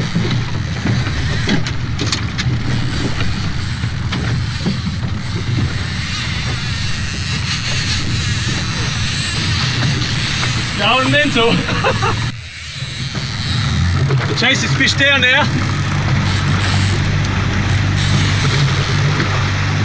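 An outboard motor hums.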